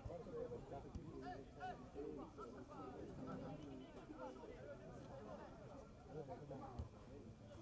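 Men shout and call out to each other outdoors, some close and some farther off.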